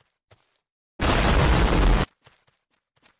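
An explosion roars with a deep rumble.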